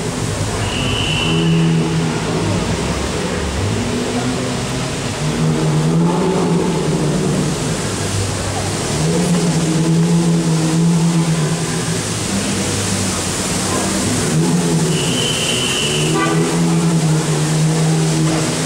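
A crowd of people chatters in the background, outdoors.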